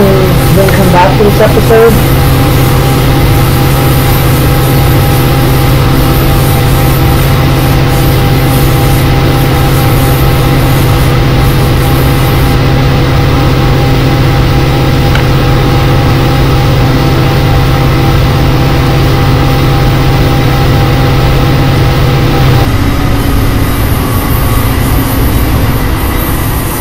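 A diesel locomotive engine rumbles and drones steadily.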